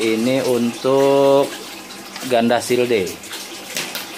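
Water sloshes in a plastic bucket as a bottle is pushed into it.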